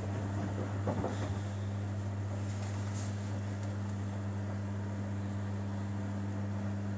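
Wet laundry tumbles and water sloshes in a washing machine drum.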